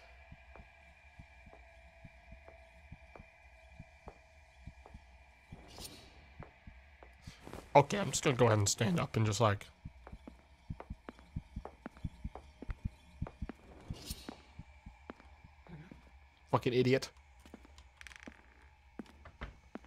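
Footsteps thud steadily on a creaky wooden floor.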